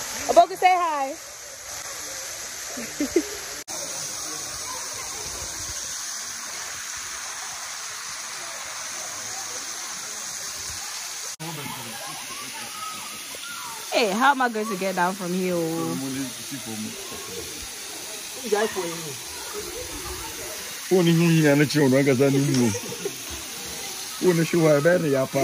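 A waterfall splashes steadily onto rocks and water.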